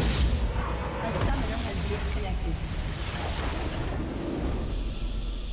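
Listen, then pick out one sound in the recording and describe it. A game's magic blast crackles and booms.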